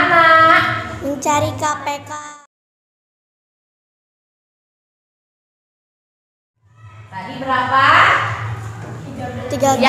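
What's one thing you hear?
A woman speaks clearly and calmly to a class.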